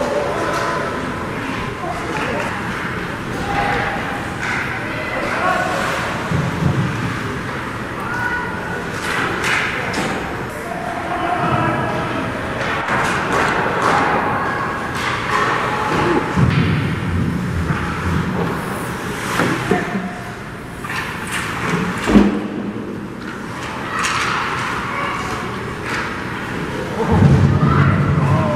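Ice skates scrape and carve across the ice.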